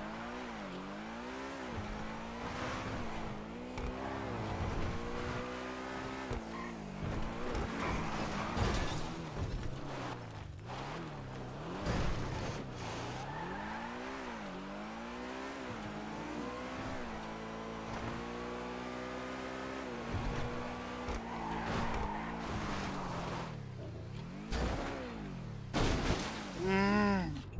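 A sports car engine revs up and down as the car speeds along.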